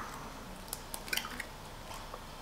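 An egg cracks against a bowl.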